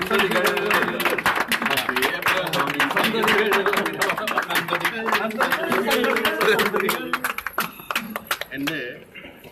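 A group of people claps hands quickly and steadily.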